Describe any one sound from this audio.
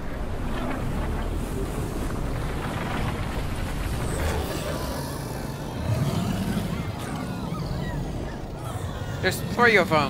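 A giant creature roars with a deep rumble.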